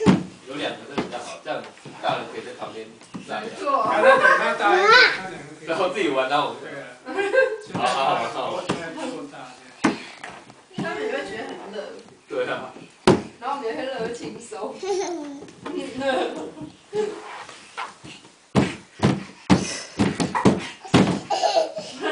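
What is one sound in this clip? Small hands and feet thump on a hollow plastic play structure.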